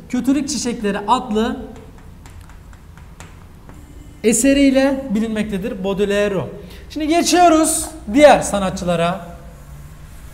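A young man speaks clearly, pausing between phrases.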